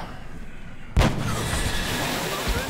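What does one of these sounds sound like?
A burst of alien goo splatters with a wet crunch.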